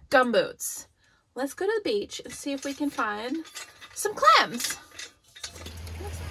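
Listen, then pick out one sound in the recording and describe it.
A young woman speaks with animation close to the microphone.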